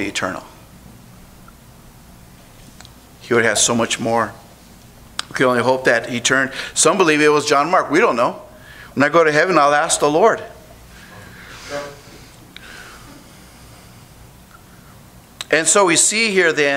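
A middle-aged man speaks with feeling into a microphone, with pauses between phrases.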